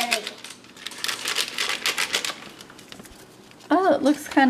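A paper bag crinkles and rustles.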